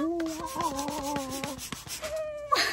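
A young woman claps her hands.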